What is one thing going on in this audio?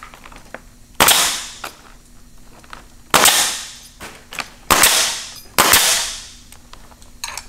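A pneumatic nail gun fires with sharp, hissing bangs.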